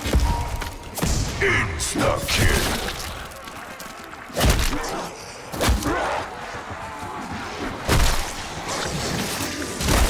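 Zombies growl and snarl close by.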